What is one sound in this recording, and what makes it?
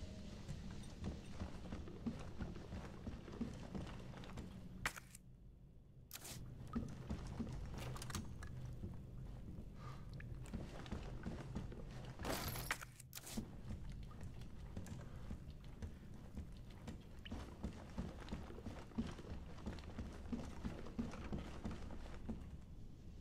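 Heavy footsteps thud slowly on a hard floor.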